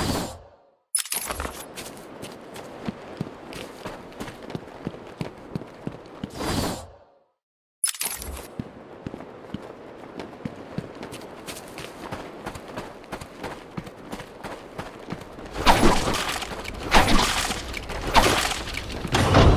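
Footsteps tread steadily on stone paving.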